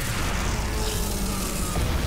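A monster roars.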